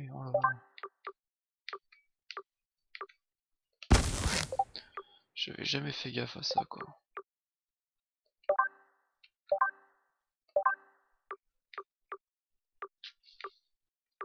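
Short game menu clicks tick as selections change.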